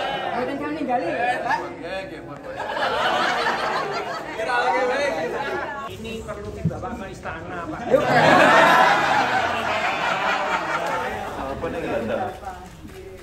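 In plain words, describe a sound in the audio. A group of men and women laugh and chatter close by.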